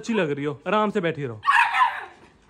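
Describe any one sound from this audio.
A puppy whines and yelps close by.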